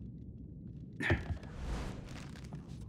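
Feet land on a stone floor with a heavy thud.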